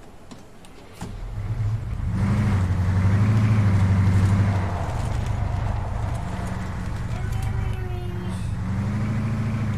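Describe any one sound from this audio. A vehicle engine rumbles loudly and revs as it drives.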